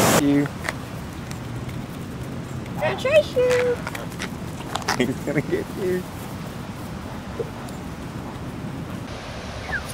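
Geese honk.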